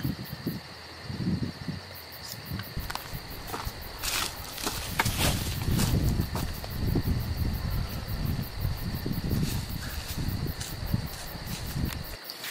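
Footsteps crunch through dry leaves outdoors.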